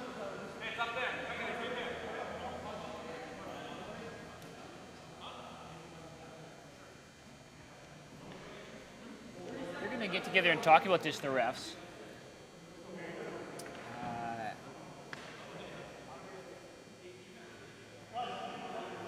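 Hockey sticks clack against a ball and the floor.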